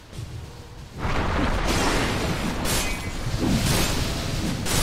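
Game spells and weapon hits crash and whoosh in a video game battle.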